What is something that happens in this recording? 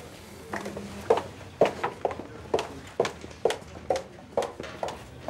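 Footsteps click on a hard floor.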